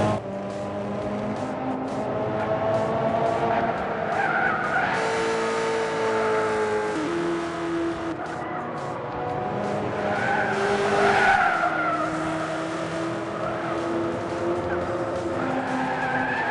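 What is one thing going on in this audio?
A racing car engine roars and shifts pitch as it speeds along.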